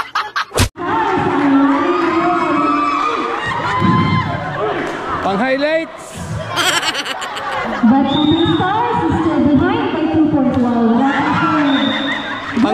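A crowd of young people shouts and cheers in an echoing covered court.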